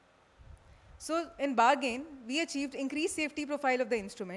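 A young woman speaks calmly into a microphone, heard through loudspeakers in a large room.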